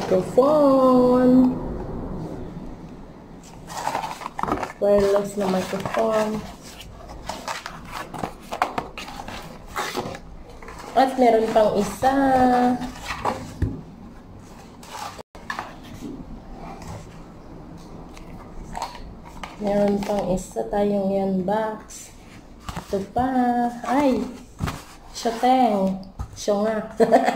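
Cardboard boxes rustle and tap as they are handled.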